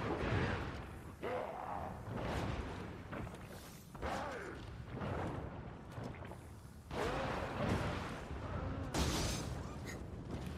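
Gunshots ring out one after another with a short echo.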